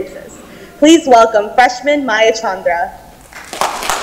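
A young woman speaks cheerfully through a loudspeaker in a large hall.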